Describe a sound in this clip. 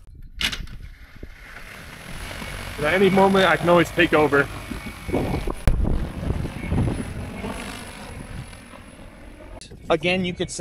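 A drone's propellers whir steadily as it takes off and hovers.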